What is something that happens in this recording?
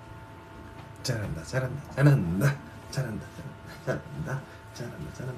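A young man talks and laughs with animation, close to a phone microphone.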